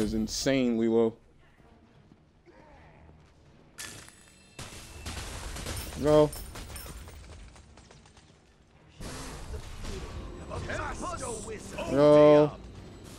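A young man talks through a microphone with animation.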